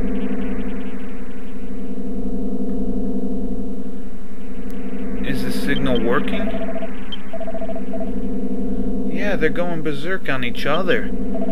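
Upbeat video game music plays steadily.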